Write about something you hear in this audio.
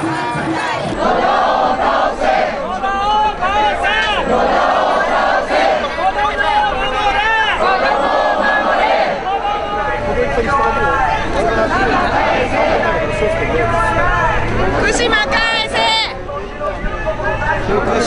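A crowd of protesters chants and shouts loudly outdoors.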